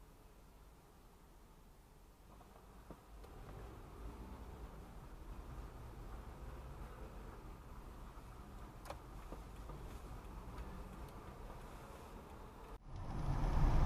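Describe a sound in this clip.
A car drives along a road with a steady low rumble.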